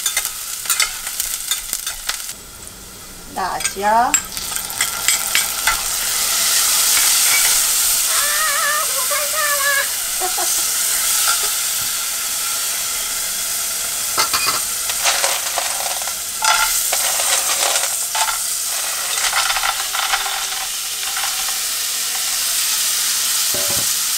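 Food sizzles steadily in hot oil.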